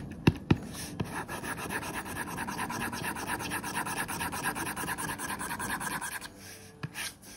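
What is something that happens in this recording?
A pen tip scratches steadily across a hard surface.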